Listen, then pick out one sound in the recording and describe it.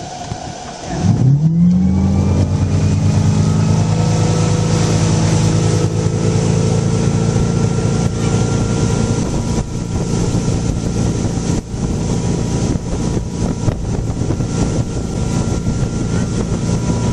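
A boat engine revs up to full throttle and drones steadily.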